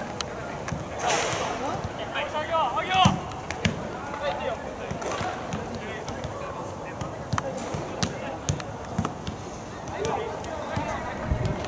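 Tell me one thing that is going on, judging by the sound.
Spectators talk nearby.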